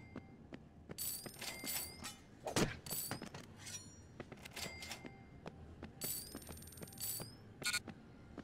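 Short bright chimes ring out as money is picked up.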